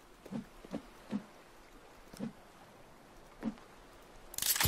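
Soft thuds sound as items are picked up and set down.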